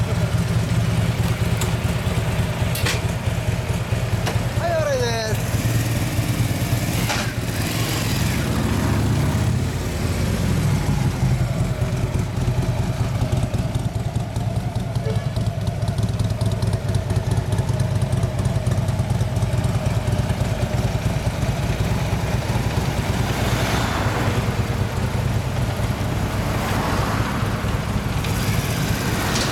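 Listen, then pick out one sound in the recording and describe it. A Harley-Davidson V-twin motorcycle idles with a deep, loping rumble through an aftermarket exhaust.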